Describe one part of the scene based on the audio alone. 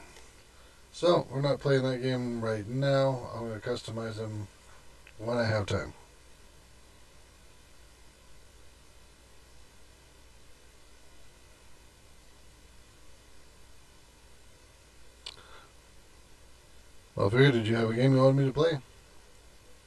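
A man speaks calmly and close into a microphone.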